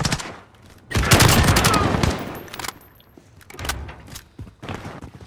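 Rapid gunfire rings out in short, loud bursts.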